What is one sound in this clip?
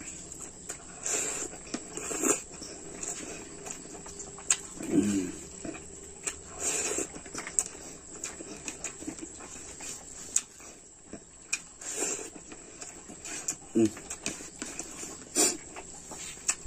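A man chews food loudly with his mouth close to a microphone.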